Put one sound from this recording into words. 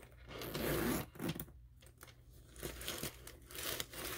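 A zipper slides open.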